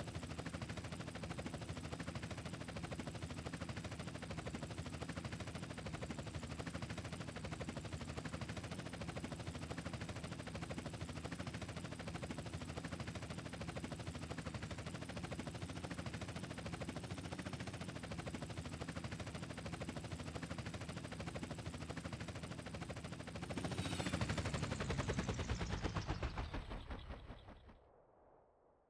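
A helicopter's rotor thumps steadily close by, then swells louder and quickly winds down to silence.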